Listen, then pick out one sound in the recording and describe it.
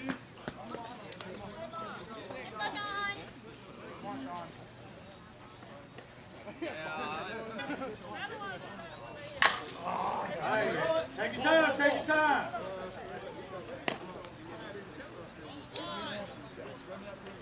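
Women call out and cheer from close by outdoors.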